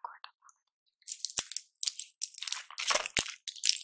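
Plastic packaging crinkles close to a microphone.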